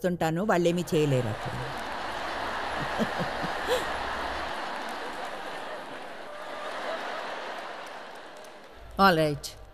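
A large audience applauds and cheers in a large hall.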